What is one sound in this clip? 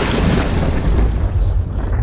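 Thick liquid flows and swirls.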